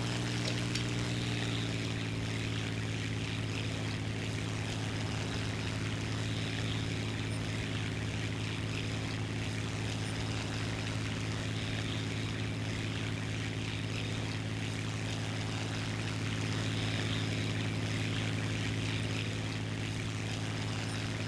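Wind rushes past a plane in flight.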